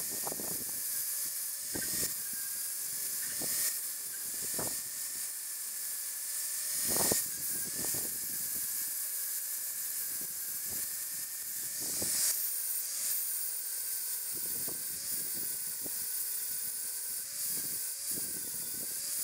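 An angle grinder whines steadily as it grinds metal.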